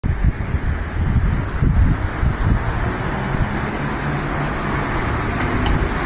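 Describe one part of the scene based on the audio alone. Cars drive past on a busy street.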